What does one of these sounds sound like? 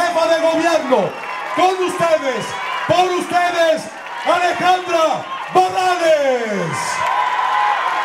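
A man shouts into a microphone over loudspeakers.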